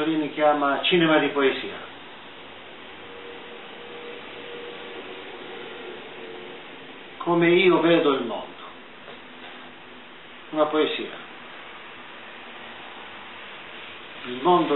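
An elderly man speaks calmly in short bursts, heard through an online call.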